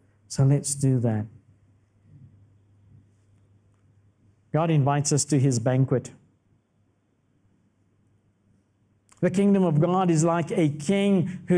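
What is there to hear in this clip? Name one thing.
A man speaks with emphasis into a microphone, heard through loudspeakers in a large hall, pausing between phrases.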